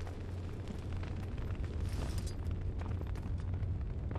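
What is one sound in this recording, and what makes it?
A fire crackles in a fireplace.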